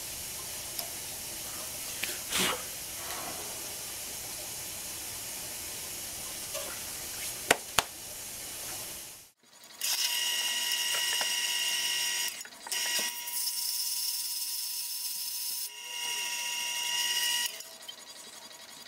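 A lathe hums steadily as it turns.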